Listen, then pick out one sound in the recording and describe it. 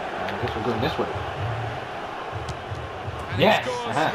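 A football is struck hard with a boot.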